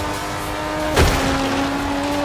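A car thuds against another car.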